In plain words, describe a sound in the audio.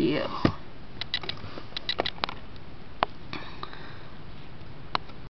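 A hard plastic stand clicks and taps as it is handled.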